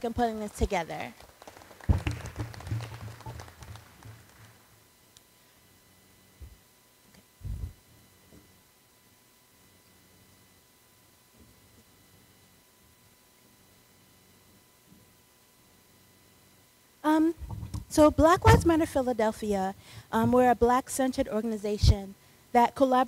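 A woman speaks into a microphone over a loudspeaker in a large echoing hall.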